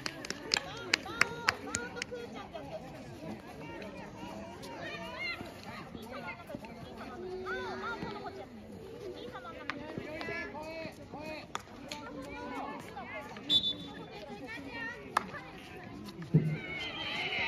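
Field hockey sticks strike a ball with sharp cracks.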